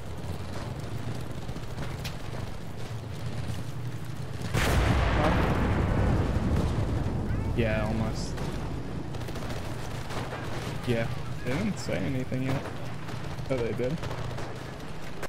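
Footsteps run over grass and gravel.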